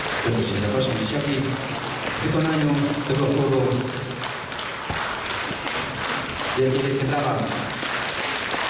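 A choir of men and women sings together.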